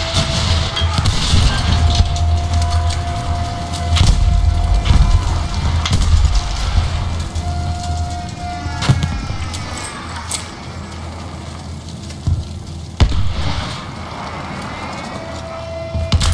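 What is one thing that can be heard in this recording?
Gunshots crack and boom in sharp bursts.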